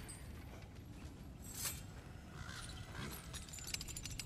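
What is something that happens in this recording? A metal chain clinks and rattles as someone climbs it.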